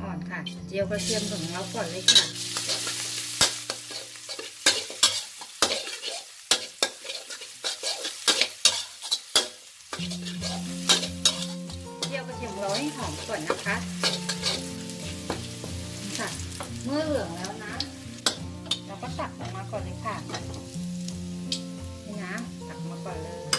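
Garlic sizzles in hot oil.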